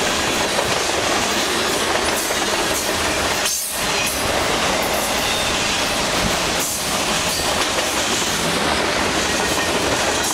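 A freight train rumbles past close by, its wheels clattering loudly on the rails.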